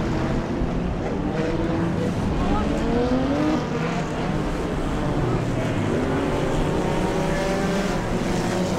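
Race car engines roar loudly around a dirt track outdoors.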